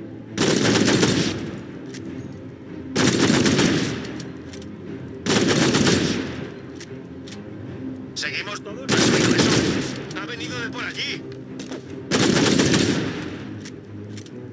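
Pistol shots ring out in loud, repeated bursts, each with a rumbling tail.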